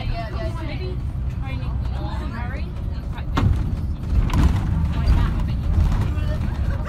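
A bus engine rumbles steadily from inside the moving bus.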